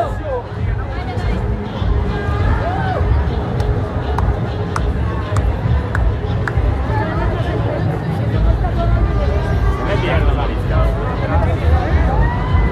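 A crowd of marchers chatters and shouts outdoors.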